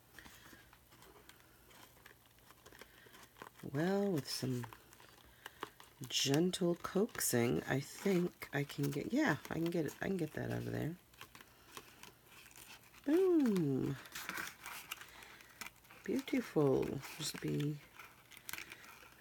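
Stiff paper rustles and crinkles between fingers.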